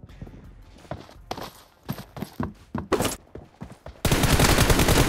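Footsteps thud quickly across a wooden surface.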